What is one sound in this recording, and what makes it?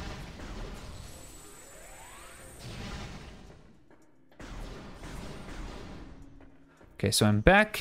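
An energy blaster fires rapid zapping shots.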